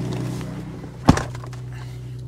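A vehicle door thumps shut.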